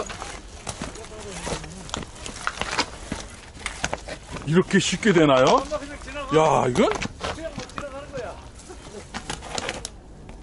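Bicycle tyres clatter and bump over rocky ground.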